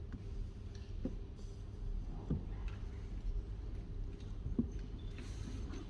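A book knocks softly on a wooden table.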